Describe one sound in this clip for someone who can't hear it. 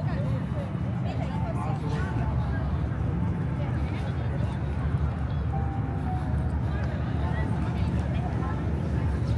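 A crowd of people chatters in the distance.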